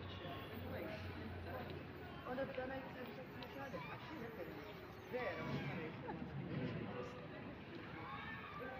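Women and young children chatter and call out nearby, outdoors.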